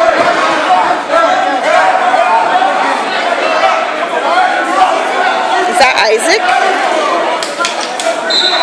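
A crowd of spectators talks and calls out in a large echoing gym.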